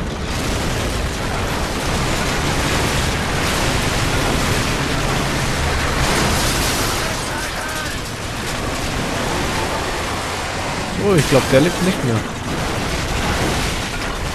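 Metal grinds and screeches against metal.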